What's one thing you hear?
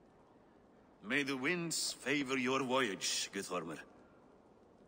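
An older man speaks slowly and gravely.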